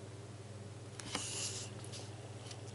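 A paper page rustles as it is turned.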